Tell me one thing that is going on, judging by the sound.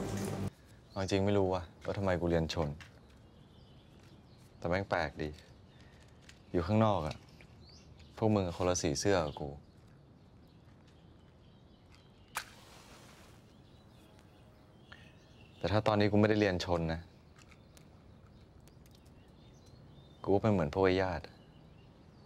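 A young man speaks quietly and calmly, in short phrases with pauses.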